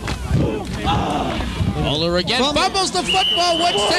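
Football players' pads clash together in a tackle.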